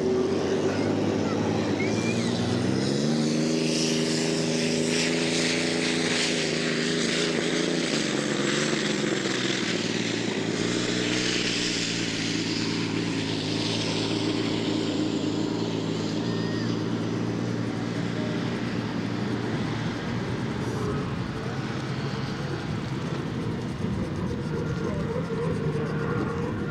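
Spray hisses as a racing boat skims over water.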